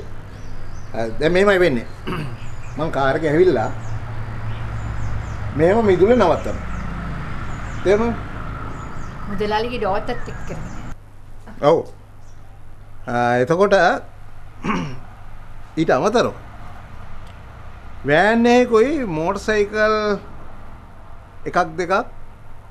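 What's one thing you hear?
A middle-aged man speaks emotionally, close by.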